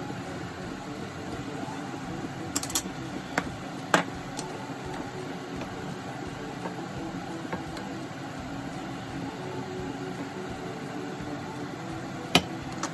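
A sauce simmers and bubbles softly in a pan.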